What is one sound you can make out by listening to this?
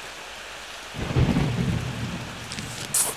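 A deep game explosion booms and rumbles.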